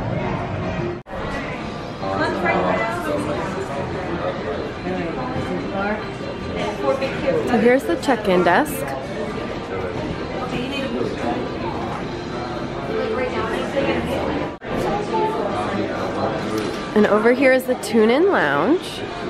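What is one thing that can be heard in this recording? Many people chatter and talk over one another in a busy room.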